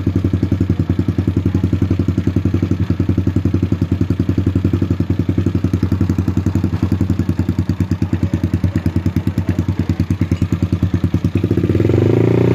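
A bored-out single-cylinder scooter engine idles with a lumpy beat.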